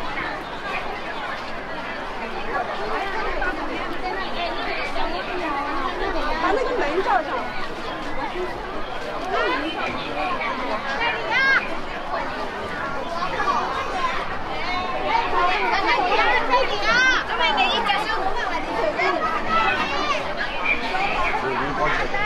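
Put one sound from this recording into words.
A crowd of men, women and children chatters outdoors all around.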